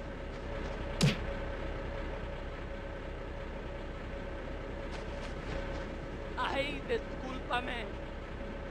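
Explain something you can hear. Punches thud in a fight.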